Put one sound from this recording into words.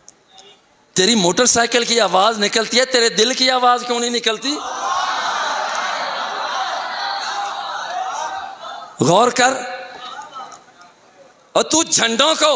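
A middle-aged man recites with feeling into a microphone, his voice rising and falling in a singsong way.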